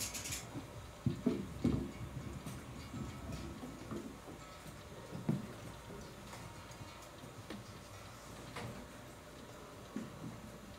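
Drums thump in a steady beat.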